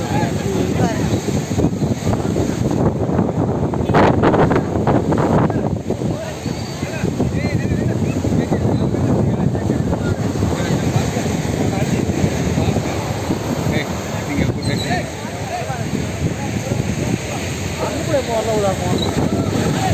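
Waves crash and surge onto a shore.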